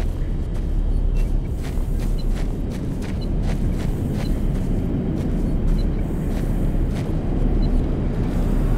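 An electronic detector beeps in short, high blips.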